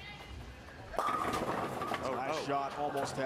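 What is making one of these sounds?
Bowling pins crash and scatter loudly.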